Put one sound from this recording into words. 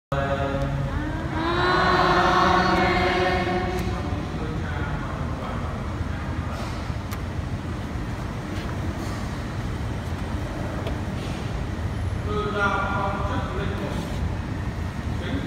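A man chants into a microphone, heard through loudspeakers in a large echoing hall.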